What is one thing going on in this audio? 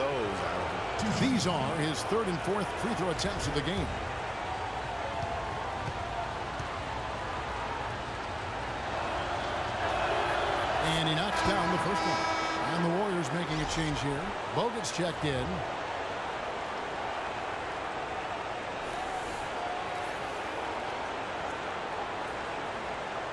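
A large crowd murmurs and cheers in an arena.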